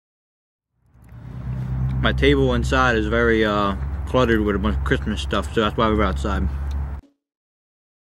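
A young man talks playfully close by.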